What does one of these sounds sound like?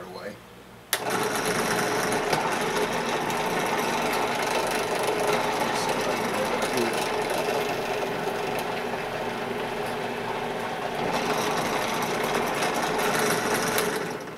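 A drill press motor runs with a steady whirring hum.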